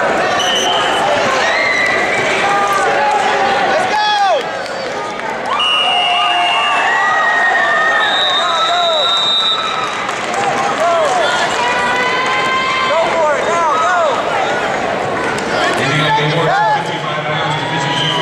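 Shoes squeak sharply on a mat again and again.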